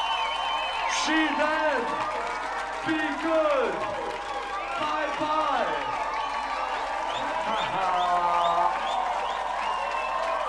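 A man shouts energetically into a microphone.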